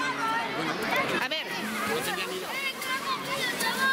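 A firework fizzes and crackles on the ground.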